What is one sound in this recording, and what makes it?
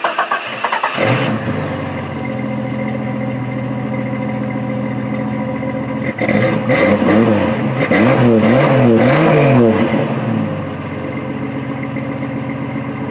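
A car engine idles with a deep exhaust rumble.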